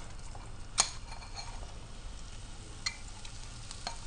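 Sliced onions drop into a frying pan.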